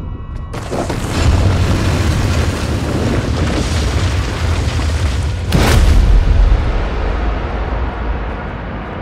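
Rocks crash down with a deep, loud rumble that slowly fades.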